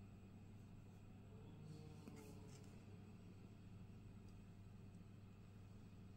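A glass candle holder is set down on a hard surface.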